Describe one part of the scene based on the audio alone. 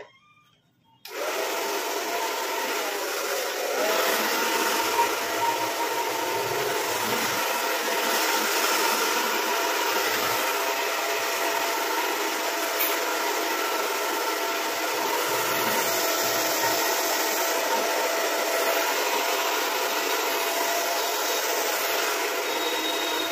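A hair dryer blows with a steady loud whir close by.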